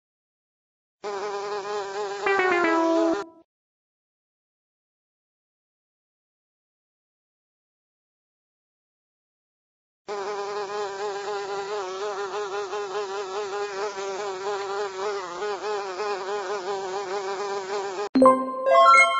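Bees buzz in a loud swarm.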